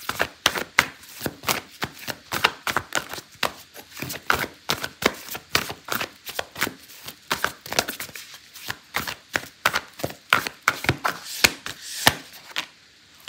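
Playing cards riffle and flick rapidly as a deck is shuffled.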